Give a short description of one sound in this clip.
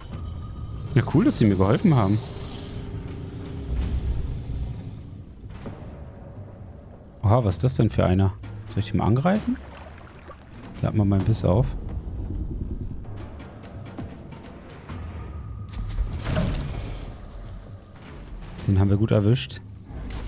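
A crocodile growls and bellows in deep bursts.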